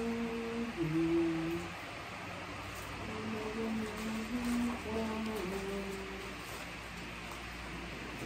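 Plastic wrapping crinkles as flowers are handled.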